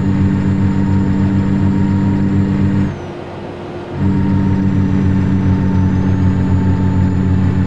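A truck engine drones steadily with a low, pulsing rumble.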